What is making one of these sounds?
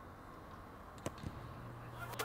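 A rugby ball is kicked with a dull thud.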